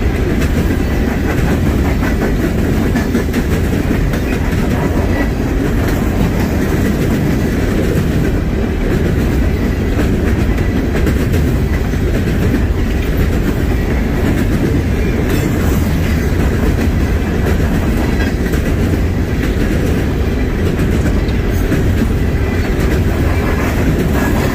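Steel wheels clack rhythmically over rail joints.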